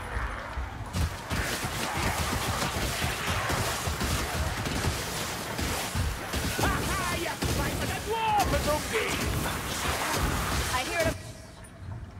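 Blades slash and strike in a chaotic fight.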